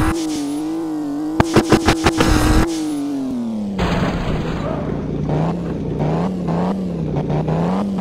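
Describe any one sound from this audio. A car engine hums steadily at speed, then drops in pitch as the car slows to idle.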